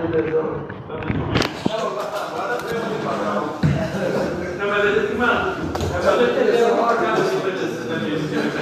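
Several men talk over one another in a large echoing room.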